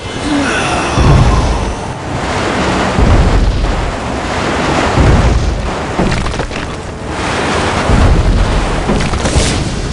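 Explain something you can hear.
Fiery blasts boom with a deep rumble.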